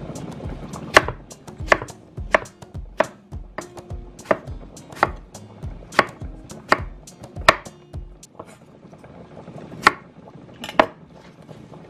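A knife chops sharply on a wooden cutting board.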